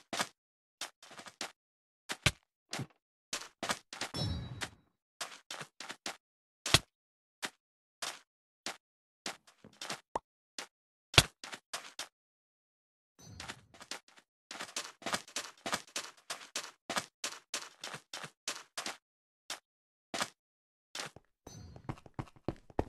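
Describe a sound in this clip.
Footsteps tap quickly on hard stone floors.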